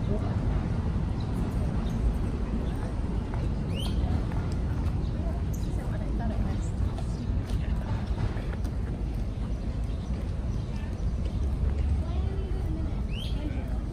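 Men and women chat quietly as they walk past outdoors.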